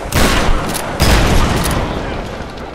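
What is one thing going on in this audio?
An explosion booms and crackles.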